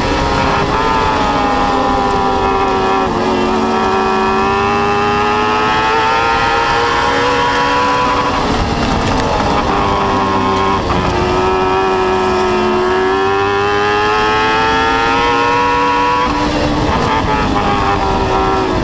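A race car engine roars loudly close by, its pitch rising and falling as it accelerates and eases off.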